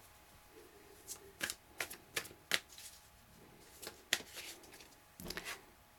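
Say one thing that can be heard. Playing cards riffle and slide as a deck is shuffled by hand.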